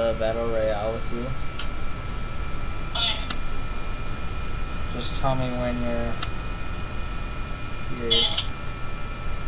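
A man talks into a microphone in short bursts.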